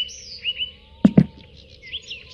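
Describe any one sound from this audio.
A metal can is set down with a hollow clunk.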